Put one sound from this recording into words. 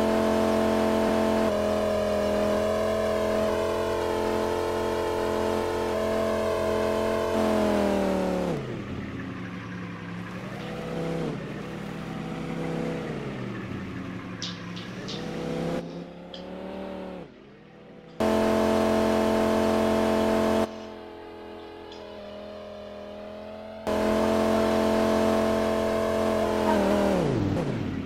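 A racing car engine roars at high, steady revs.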